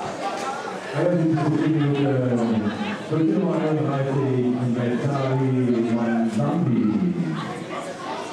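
Spectators cheer loudly outdoors.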